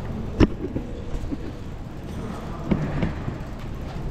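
Footsteps echo in a large hall.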